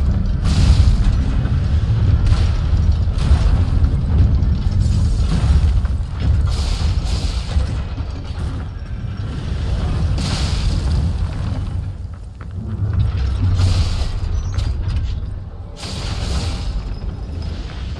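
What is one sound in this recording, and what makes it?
Giant metal feet stomp heavily on the ground with deep thuds.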